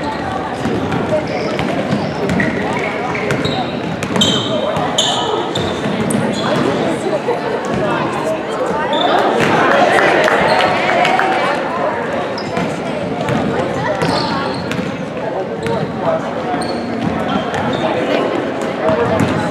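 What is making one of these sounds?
A crowd of spectators murmurs and cheers in a large echoing gym.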